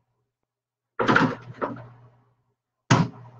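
Dishes clatter in a cupboard.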